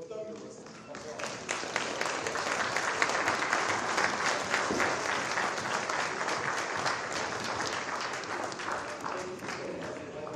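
A congregation of men and women murmurs and chatters in a large echoing hall.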